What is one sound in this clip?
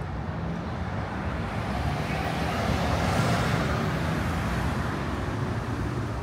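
Cars drive past on a city street.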